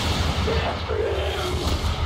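A laser beam hums as a weapon fires.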